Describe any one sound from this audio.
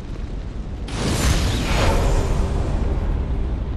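A burst of magic flares with a rushing whoosh.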